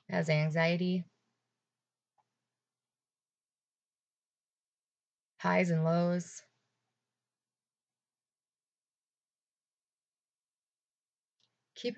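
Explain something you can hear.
A young woman speaks calmly and close to a microphone, in short phrases with long pauses.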